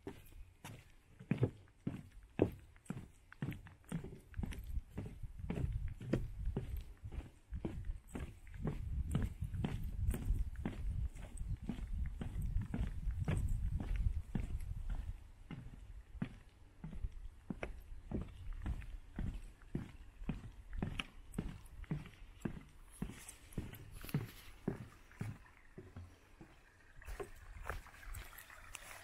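Footsteps tread steadily at a walking pace.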